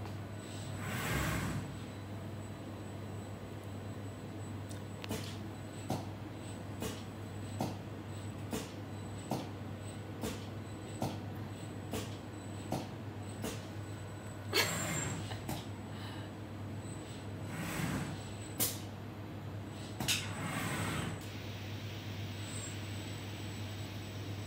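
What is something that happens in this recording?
A robotic arm whirs as it moves.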